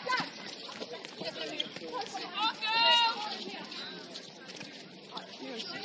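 Young women call out and shout to each other on an outdoor court.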